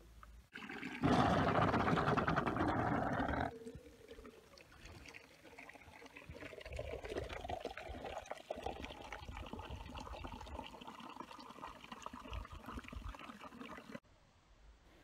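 Water splashes from a tap into a jug.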